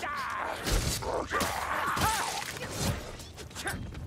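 A blade slashes and thuds into flesh in quick blows.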